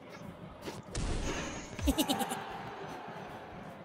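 A burst of celebratory noise rings out when a point is scored.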